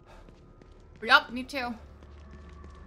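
A young woman exclaims briefly into a close microphone.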